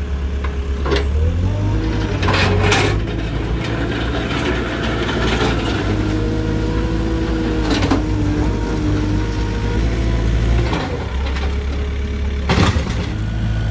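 A loader bucket scrapes and clanks against the pavement.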